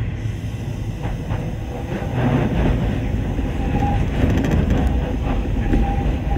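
Train wheels clatter over rail joints and points.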